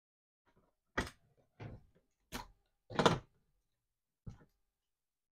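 A smoke alarm clicks as it is twisted onto its ceiling mount.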